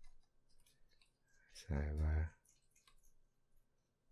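Pigs grunt and squeal nearby.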